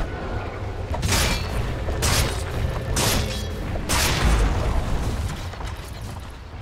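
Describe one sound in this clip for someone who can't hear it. Combat sound effects of magic blasts and weapon hits burst out in quick succession.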